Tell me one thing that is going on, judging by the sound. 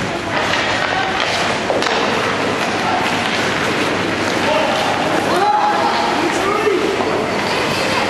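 Children shout to each other across an echoing rink.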